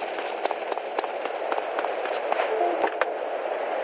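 Footsteps run on pavement.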